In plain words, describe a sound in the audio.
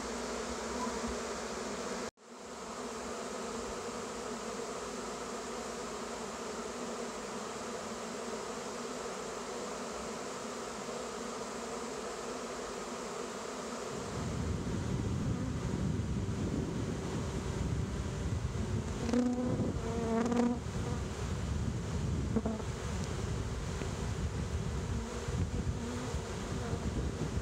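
Bees buzz in a steady, droning hum.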